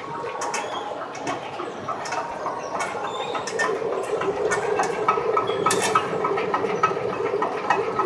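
A measuring wheel counter clicks rapidly as cloth runs under it.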